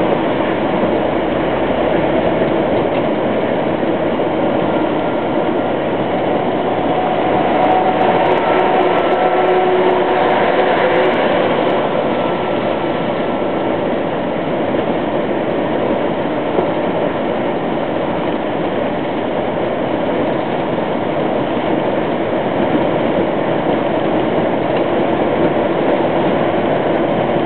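A vehicle's engine hums steadily from inside the cabin.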